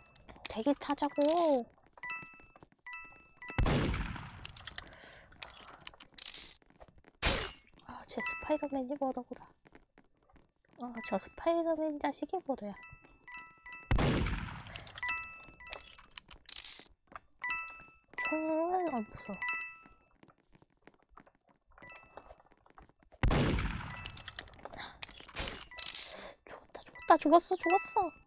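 A boy talks with animation into a close microphone.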